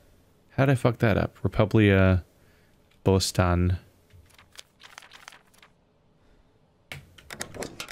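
Paper pages flip one after another.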